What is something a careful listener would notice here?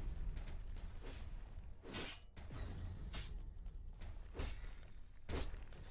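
Quick whooshing bursts sound as a game character dashes up a wall.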